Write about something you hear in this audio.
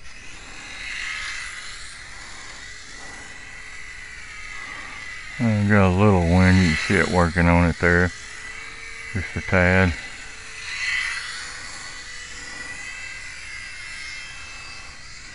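A small model plane's electric motor whines overhead, rising and falling as it passes back and forth.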